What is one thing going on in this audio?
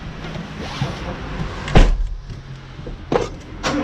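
A car door thuds shut close by.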